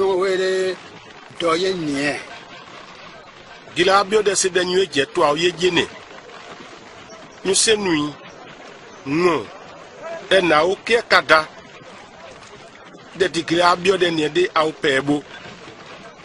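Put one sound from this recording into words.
A man speaks calmly and earnestly nearby.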